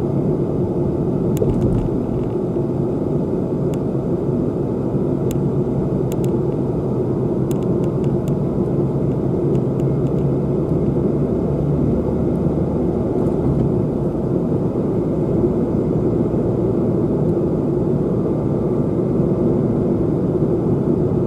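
A car engine hums steadily as tyres roll over the road, heard from inside the car.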